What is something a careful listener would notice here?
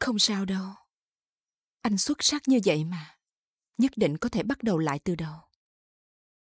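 A woman speaks softly and closely.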